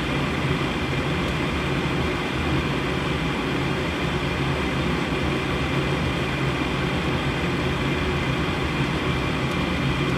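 A gas burner roars steadily with a low hum.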